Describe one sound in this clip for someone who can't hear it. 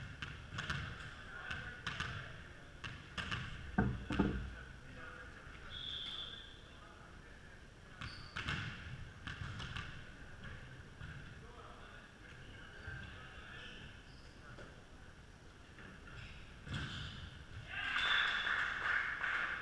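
Men call out to each other across a large echoing gym.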